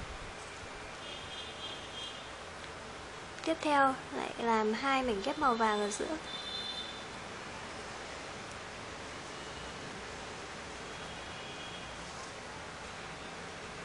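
Folded paper pieces rustle softly as they are pressed together.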